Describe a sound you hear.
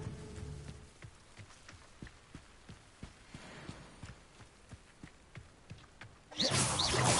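Footsteps thud quickly on a wet dirt path.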